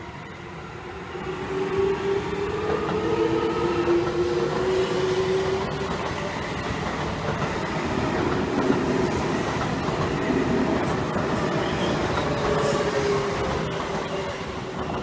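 An electric train's motor whines, rising and falling in pitch.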